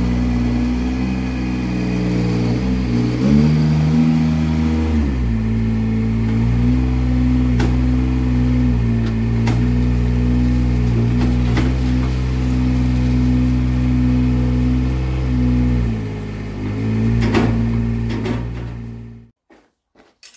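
A small loader's diesel engine runs loudly, revving up and down.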